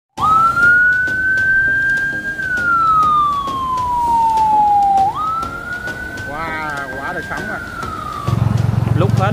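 An ambulance siren wails close by, rising and falling.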